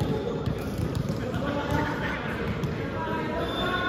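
A volleyball thumps off a player's arms.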